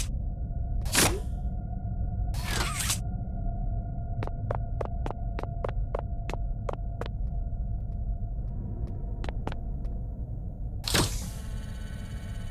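A mechanical grabber arm shoots out with a sharp whoosh.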